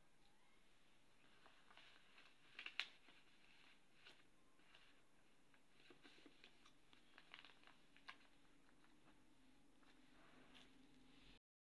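Paper rustles and crinkles as hands handle an envelope and banknotes.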